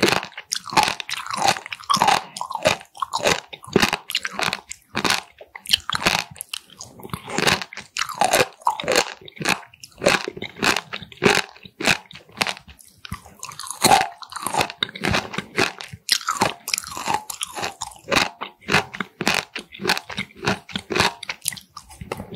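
A woman chews crunchy food loudly and wetly close to a microphone.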